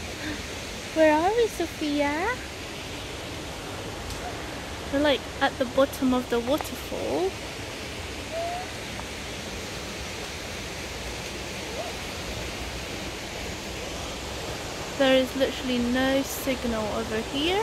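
A young woman talks calmly close by, outdoors.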